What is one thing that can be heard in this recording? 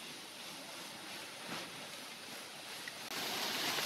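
Palm fronds rustle and scrape along the ground.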